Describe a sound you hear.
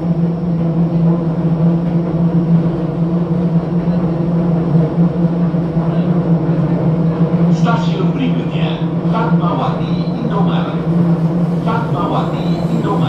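An elevated train hums steadily as it rolls along.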